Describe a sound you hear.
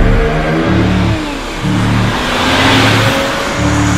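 A car approaches and passes at speed.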